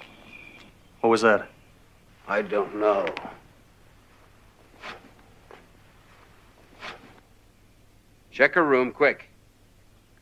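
A middle-aged man speaks quietly and tensely nearby.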